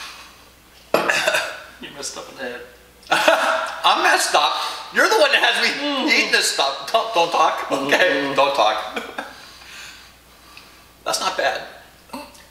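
A second man talks and laughs close by.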